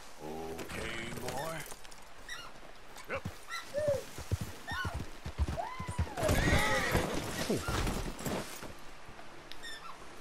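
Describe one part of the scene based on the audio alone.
A horse's hooves thud on the ground as it moves.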